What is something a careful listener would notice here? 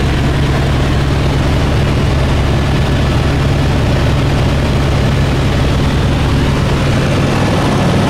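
A helicopter engine and rotor drone loudly and steadily inside the cabin.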